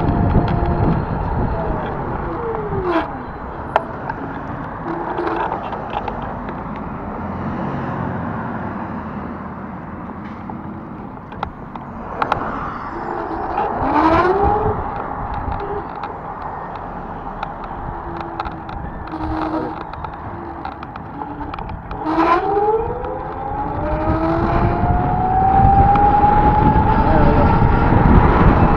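Tyres hum and wind rushes as a vehicle drives on a paved road.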